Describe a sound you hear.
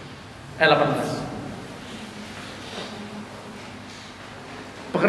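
A middle-aged man speaks into a microphone over loudspeakers in an echoing room.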